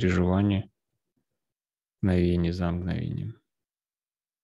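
A man sings in a deep, steady voice through an online call, in two short phrases.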